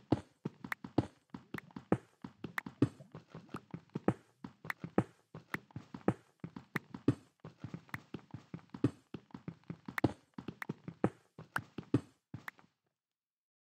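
Stone blocks crack and crumble in quick repeated hits as they are mined.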